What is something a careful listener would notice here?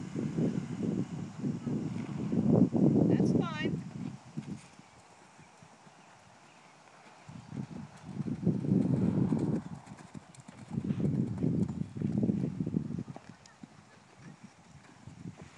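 A horse's hooves thud on soft sand.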